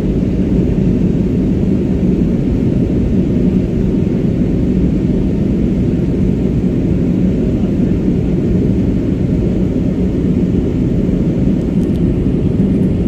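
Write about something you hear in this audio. A jet airliner's engines roar steadily with a deep, muffled rumble inside the cabin.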